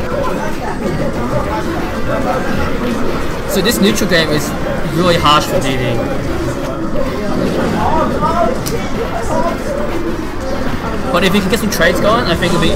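Video game fighting sounds clash with punches, hits and blasts.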